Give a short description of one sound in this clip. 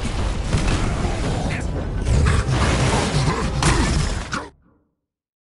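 Energy blasts crackle and boom loudly during a fight.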